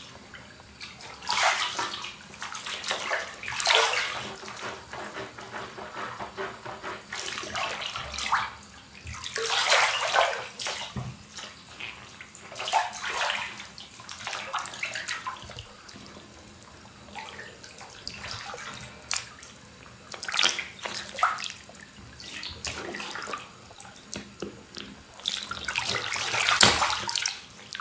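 Water splashes and sloshes in a bathtub.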